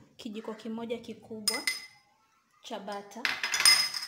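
A spoon clinks against a small glass bowl.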